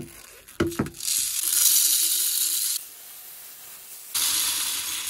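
Metal pellets pour and rattle into a plastic tube.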